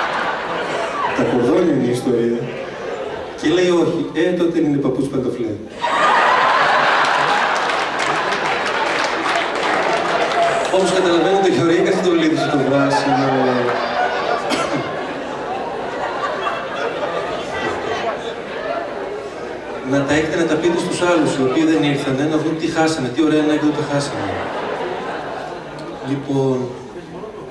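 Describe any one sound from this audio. A man speaks calmly into a microphone, heard through loudspeakers in a large hall.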